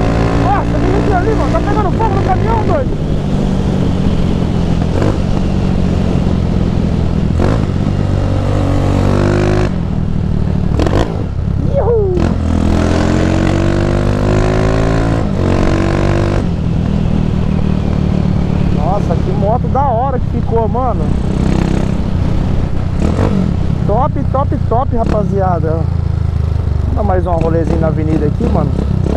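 A motorcycle engine hums steadily up close and rises and falls as it speeds up and slows down.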